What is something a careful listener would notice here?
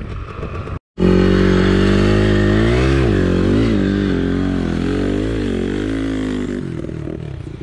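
A motorcycle engine runs loudly close by, revving up and down.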